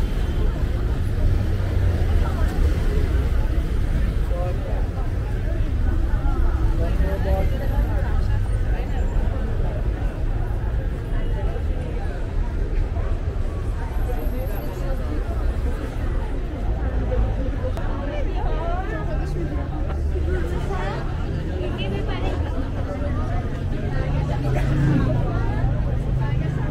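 A crowd of pedestrians chatters all around, outdoors.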